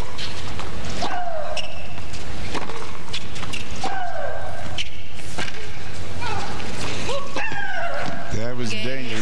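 A young woman shrieks loudly with each hit.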